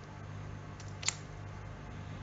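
A metal watch clasp clicks open.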